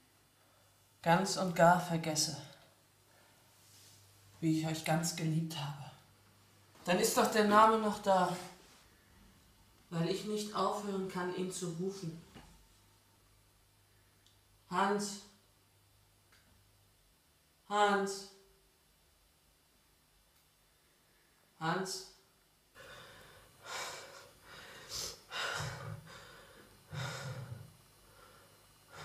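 A young woman speaks close by in drawn-out, wavering phrases.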